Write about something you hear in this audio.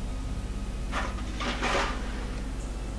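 A metal canister clanks into place.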